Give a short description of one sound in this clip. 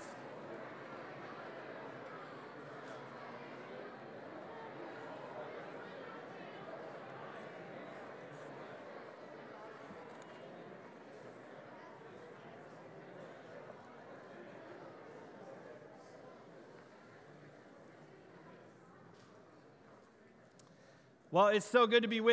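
A large crowd chatters and mingles in an echoing hall, slowly quieting.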